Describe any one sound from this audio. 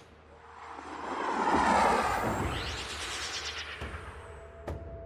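A spaceship engine roars and whooshes past.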